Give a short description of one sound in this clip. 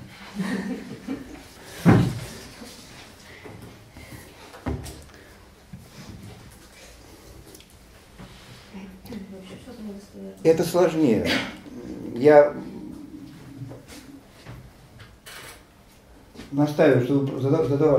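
An older man speaks calmly.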